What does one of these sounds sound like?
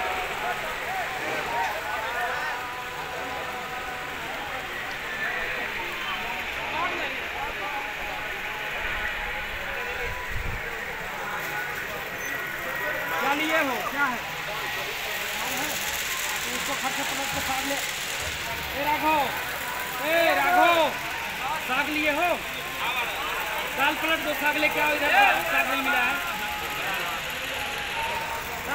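A crowd of men talk and murmur together.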